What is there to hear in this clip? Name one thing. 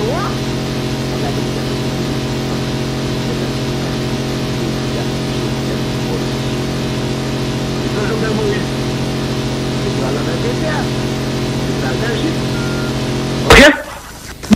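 A jet engine whines and roars steadily close by.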